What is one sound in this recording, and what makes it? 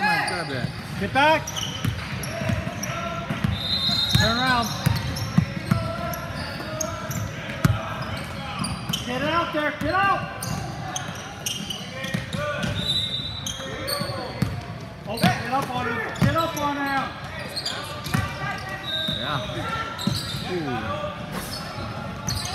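Young players call out and chatter around the court.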